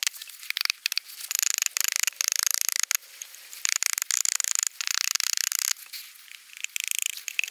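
An axe head scrapes along wood.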